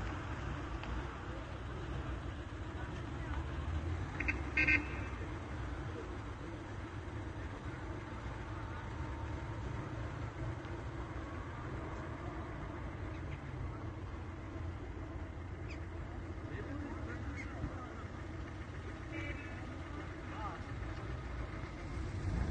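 Cars and trucks rumble steadily along a nearby road.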